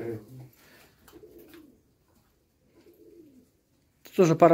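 Pigeons coo softly.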